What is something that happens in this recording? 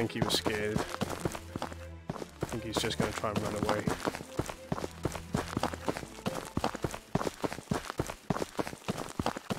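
Footsteps tread on grass and dirt.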